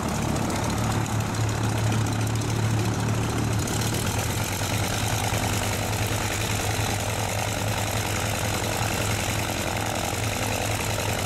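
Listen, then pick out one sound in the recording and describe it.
A small propeller plane's engine rumbles steadily nearby as it taxis.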